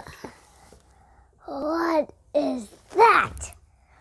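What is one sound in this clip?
A young girl giggles.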